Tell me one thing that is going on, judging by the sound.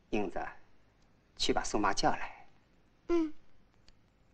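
A woman speaks calmly to a child nearby.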